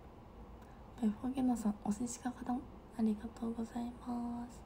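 A young woman speaks softly and casually close to a microphone.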